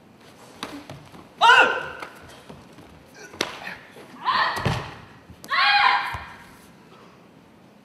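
Bare feet thump and slap on a mat.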